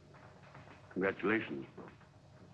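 A man speaks briefly and calmly.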